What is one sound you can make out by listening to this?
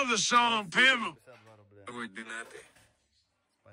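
A young man talks close by in a relaxed voice.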